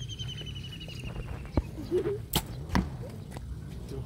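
A bowstring snaps sharply as an arrow is released.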